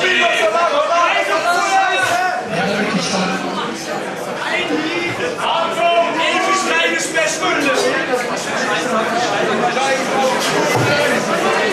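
A young man shouts rapidly into a microphone through loudspeakers, echoing around the room.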